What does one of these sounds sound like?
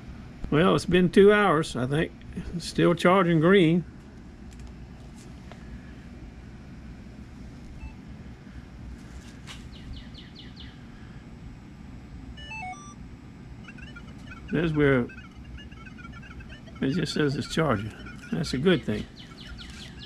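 A metal detector gives out loud warbling tones in short bursts.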